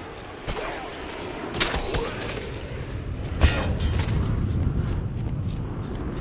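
Zombies groan and moan nearby.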